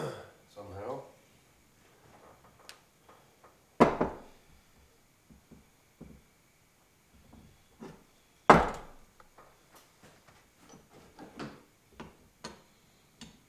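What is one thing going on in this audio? Metal parts clink and scrape as hands turn them over.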